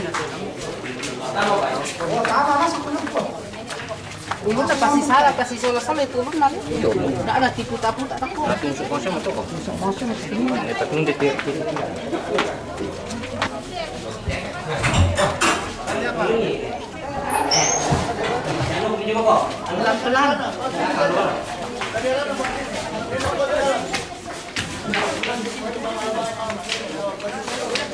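Men talk with each other nearby, with animation.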